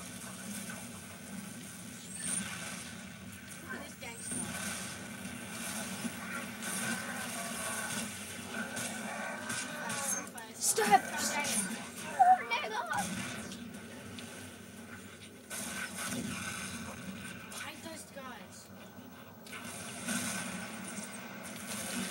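Gunfire and explosions from a video game play through a television speaker.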